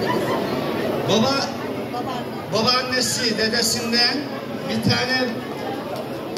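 Several women cheer and call out loudly in bursts.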